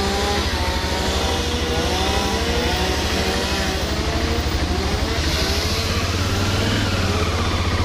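A car drives slowly past close by.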